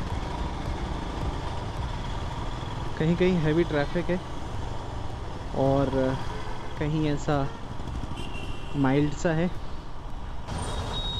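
Traffic of cars, buses and scooters rumbles close by.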